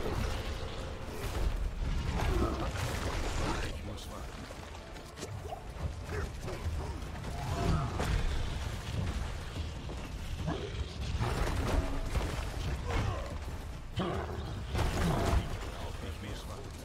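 Heavy combat impacts thud repeatedly.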